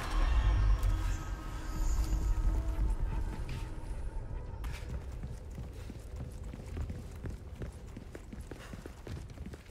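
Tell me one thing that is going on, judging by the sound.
Footsteps thud on creaking wooden planks.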